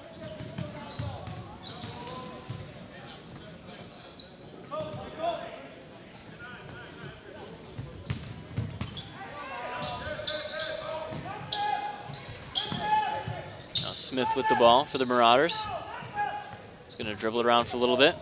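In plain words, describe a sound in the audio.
A basketball bounces on a wooden court floor.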